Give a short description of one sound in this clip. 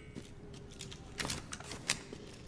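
A pistol magazine clicks as a gun is reloaded.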